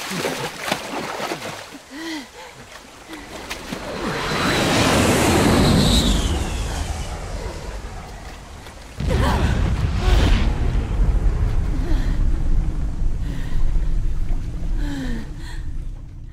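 Water sloshes and splashes as people wade through it.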